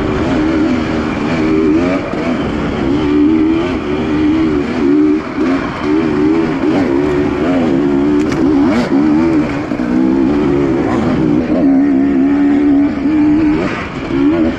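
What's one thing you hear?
Tyres crunch over rough dirt and stones.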